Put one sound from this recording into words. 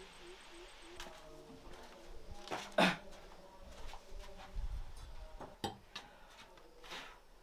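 Dishes and bowls clink and knock against each other close by.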